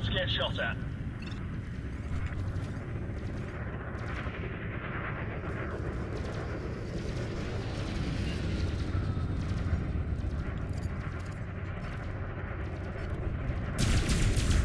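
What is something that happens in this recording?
A spaceship engine hums with a low, steady rumble.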